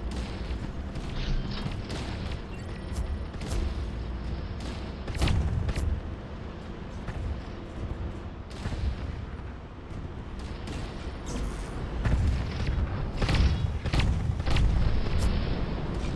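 Cannon shots fire with sharp bangs.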